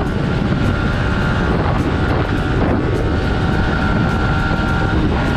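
A motorcycle engine roars steadily at speed.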